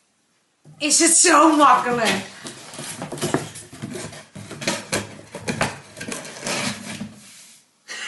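A cardboard box rustles and scrapes as it is handled.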